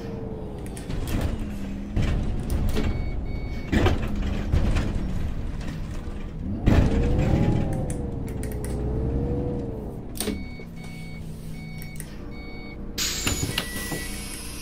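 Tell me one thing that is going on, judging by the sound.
A bus engine hums and whines as the bus drives along.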